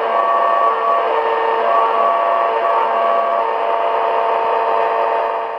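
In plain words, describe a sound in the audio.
A small radio plays a tune through its tinny speaker.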